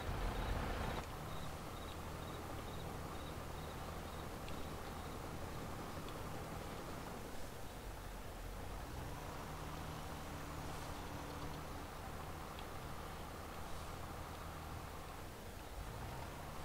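A grain auger whirs steadily as grain pours through it.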